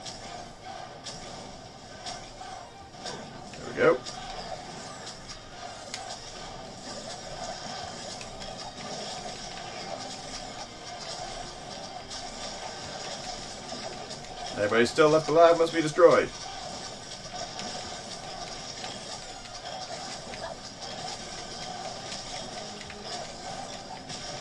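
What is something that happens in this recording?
Video game sound effects and music play steadily throughout.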